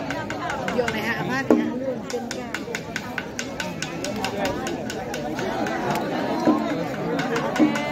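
A crowd of people talks and murmurs all around outdoors.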